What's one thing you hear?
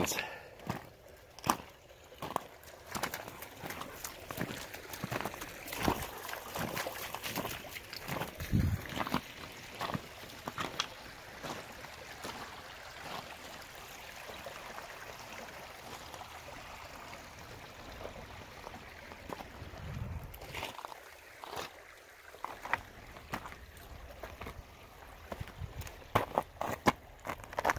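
Footsteps crunch on wet stones and gravel.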